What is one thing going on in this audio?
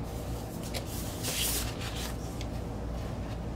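A vinyl record slides out of its paper sleeve.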